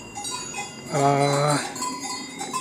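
A cow moos briefly.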